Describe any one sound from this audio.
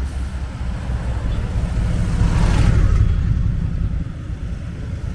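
A motorcycle rides past.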